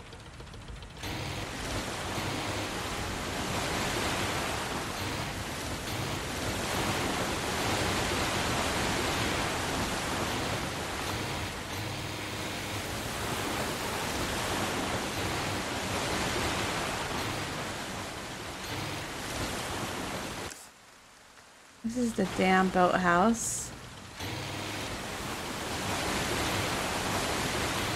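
Water splashes and churns against a moving boat.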